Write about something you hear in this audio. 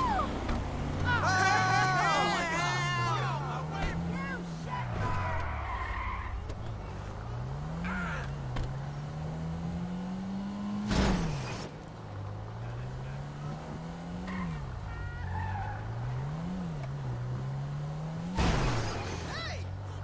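A car engine revs up and down as the car speeds along, shifting through gears.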